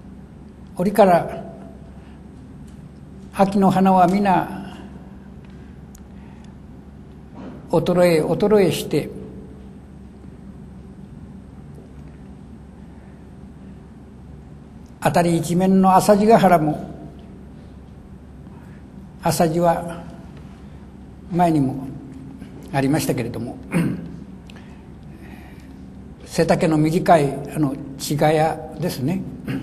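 An elderly man reads aloud slowly into a microphone, with long pauses.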